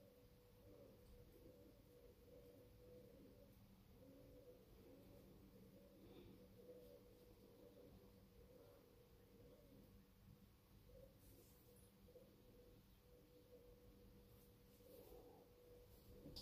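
A razor scrapes across stubble.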